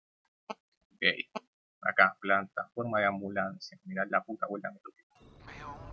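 A young man speaks with animation close to a headset microphone.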